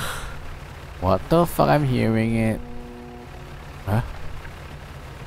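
A young woman speaks briefly with animation into a microphone.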